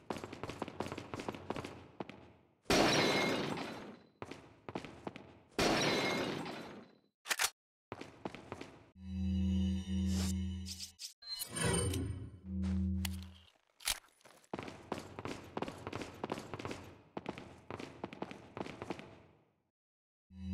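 Footsteps run quickly across a stone floor.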